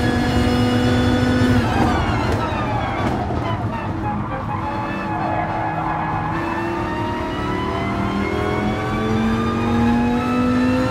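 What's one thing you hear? A racing car engine roars loudly, dropping in pitch while braking and then climbing again as it speeds up.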